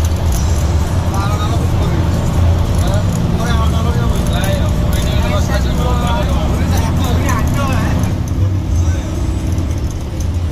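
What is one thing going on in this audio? A man talks nearby over the engine.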